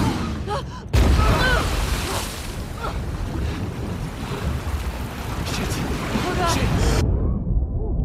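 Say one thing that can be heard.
A young woman shouts in alarm.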